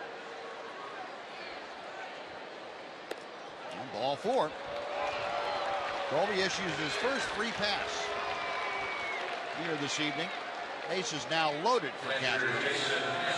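A large crowd murmurs steadily in an open stadium.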